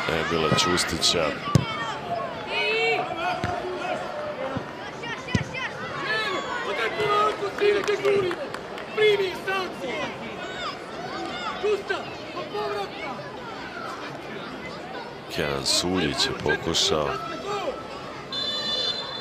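Boys shout to each other across an open outdoor pitch.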